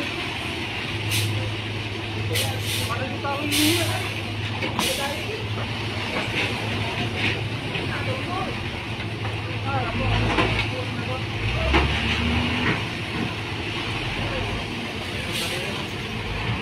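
A heavy diesel engine rumbles steadily.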